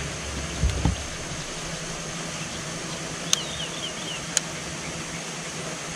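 A fishing reel clicks as it is wound in.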